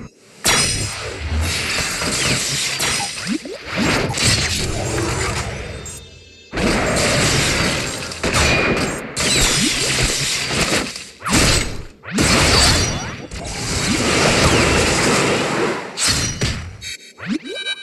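Game battle sounds of swords clashing and hits land in quick bursts.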